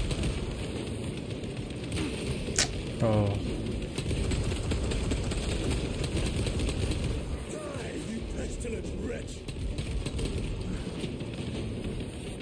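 Heavy gunfire rattles and booms throughout.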